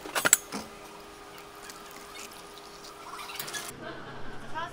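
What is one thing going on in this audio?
Water pours into a cup of ice.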